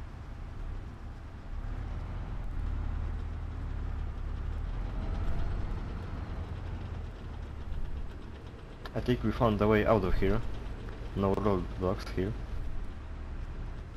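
A tank engine rumbles low and steady as the tank drives along.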